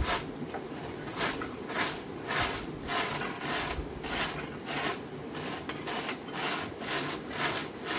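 A broom sweeps the dirt ground in brisk strokes.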